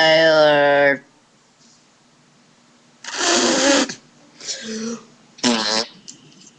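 A young boy makes loud, silly sounds with his voice close to the microphone.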